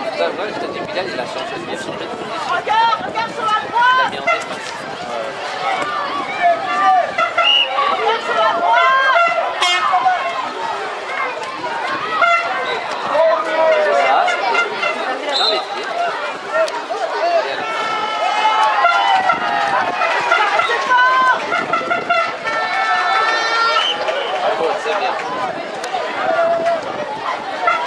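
Children shout to each other outdoors.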